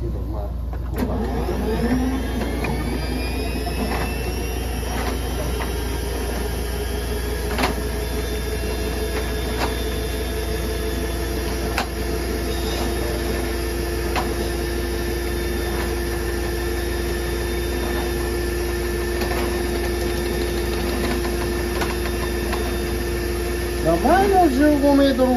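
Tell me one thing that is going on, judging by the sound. A motorised drain-cleaning cable whirs steadily as it spins.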